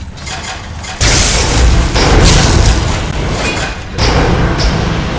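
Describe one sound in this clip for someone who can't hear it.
Loud rumbling bursts of spell energy roar.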